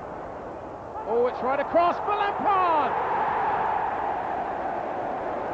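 A stadium crowd erupts into a loud, sustained roar.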